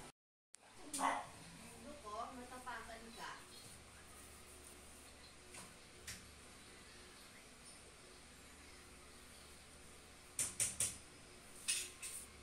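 A paintbrush swishes across a wall.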